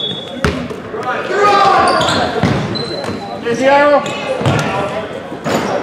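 Young men shout and call out across an echoing gym.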